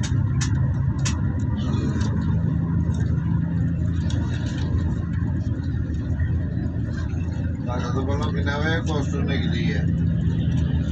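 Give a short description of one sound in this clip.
A vehicle's engine hums steadily from inside while driving along a road.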